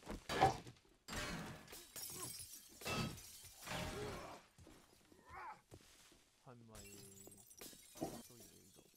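A metal bar swings and strikes with heavy, thudding blows.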